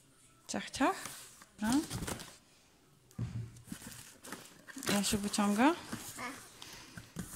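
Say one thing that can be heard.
A toddler squeals and babbles excitedly close by.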